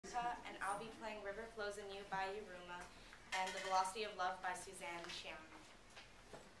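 A young woman speaks calmly and clearly nearby.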